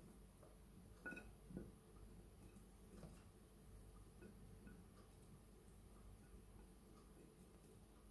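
Pieces of scallion and ginger drop onto a plate with light taps.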